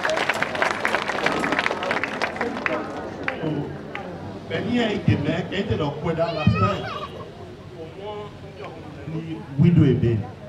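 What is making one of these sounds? A large crowd of women chatters outdoors.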